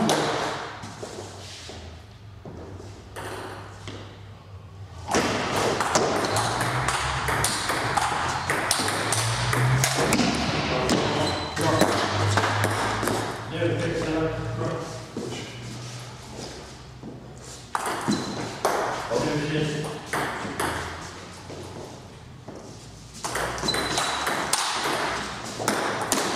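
A ball clicks back and forth on paddles and a table in an echoing room.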